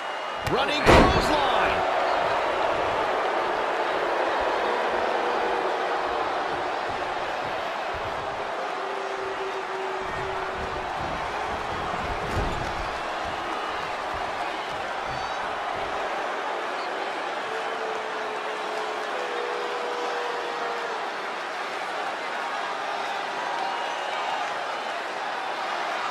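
A large crowd cheers steadily in an echoing arena.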